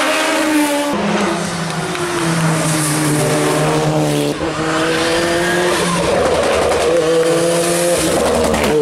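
An older rally car engine roars and revs through a bend.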